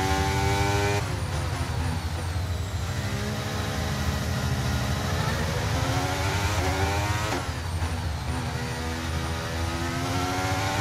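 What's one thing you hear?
A racing car engine drops in pitch as the car slows for corners.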